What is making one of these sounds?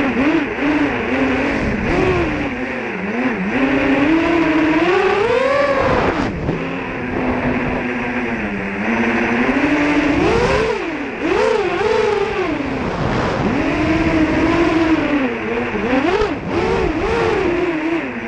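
Wind rushes past the drone as it flies.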